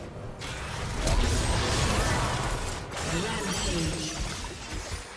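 Magic spells crackle and boom in a video game battle.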